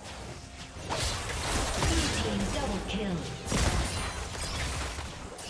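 Video game spell effects crackle and burst during a fight.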